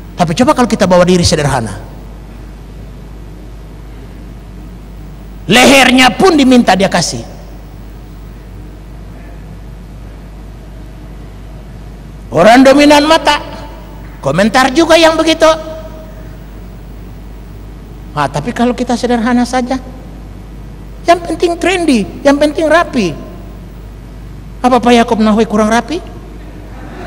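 An older man speaks with animation through a microphone, in bursts with pauses, in a large echoing hall.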